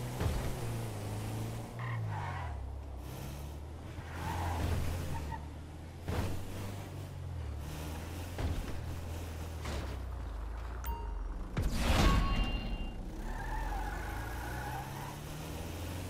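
A van engine hums and shifts pitch as it drives.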